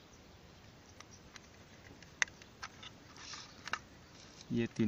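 Small plastic parts click and tap as wires are handled.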